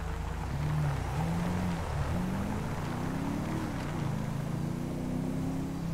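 A car engine revs up and down as the car drives along.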